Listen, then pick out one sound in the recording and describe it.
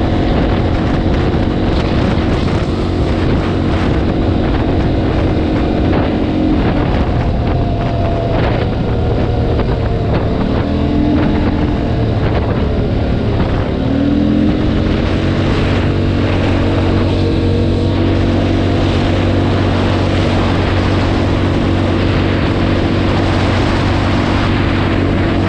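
A quad bike engine hums close by, dropping and rising as it shifts gears.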